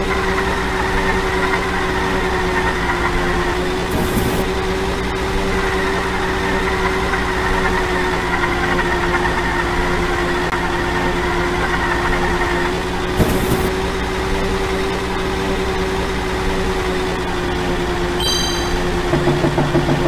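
A small kart engine hums steadily at high pitch.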